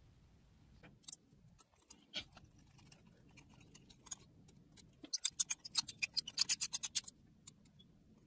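A metal tool point scratches and taps on a thin metal sheet.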